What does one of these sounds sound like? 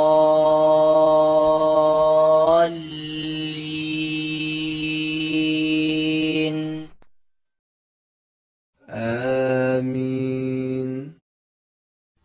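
A man chants slowly in a long, drawn-out melodic voice, in a large echoing hall.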